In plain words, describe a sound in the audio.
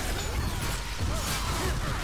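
Flames burst with a loud roar.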